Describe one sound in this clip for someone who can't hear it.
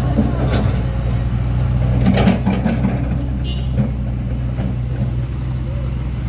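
A motorcycle engine passes by.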